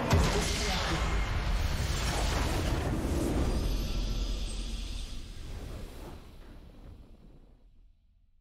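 A triumphant game fanfare swells, then slowly fades away.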